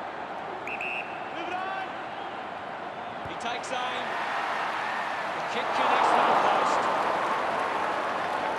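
A large crowd roars steadily in a stadium, swelling louder for a moment.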